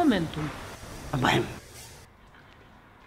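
An elderly woman speaks calmly up close.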